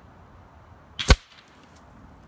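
A single gunshot cracks sharply nearby.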